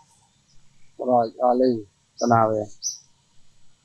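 A monkey gives a short, harsh call close by.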